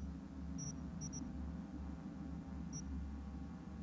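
Short electronic menu beeps sound as options are changed.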